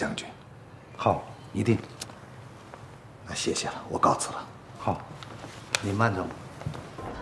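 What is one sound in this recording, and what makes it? A younger man answers briefly.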